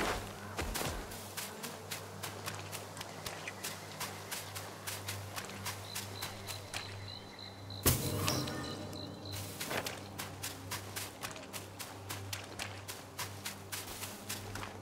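Footsteps run quickly and steadily over soft ground.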